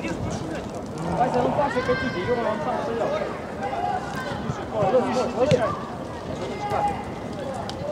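Young men shout to each other outdoors, some way off.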